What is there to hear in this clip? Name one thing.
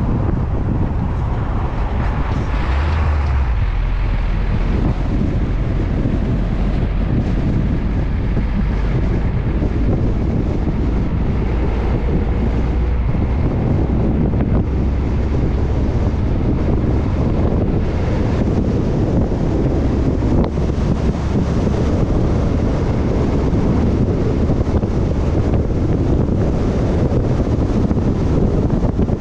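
A vehicle engine rumbles steadily as it drives along a road.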